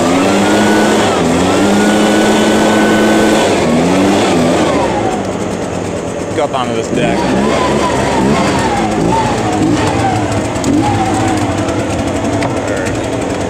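A leaf blower roars steadily close by.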